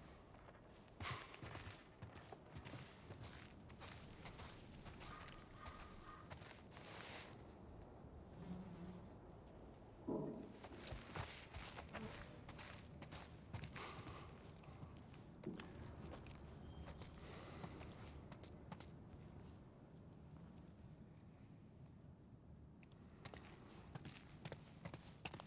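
Footsteps crunch over dry leaves and debris.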